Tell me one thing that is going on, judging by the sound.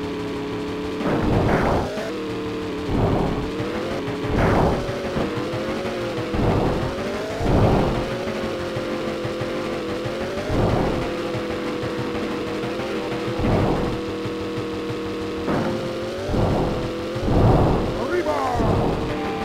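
A video game truck engine hums steadily at high speed.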